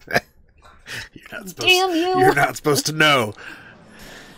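A man laughs close to a microphone.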